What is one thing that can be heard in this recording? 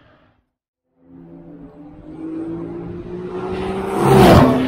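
A second race car engine roars, growing louder as the car approaches.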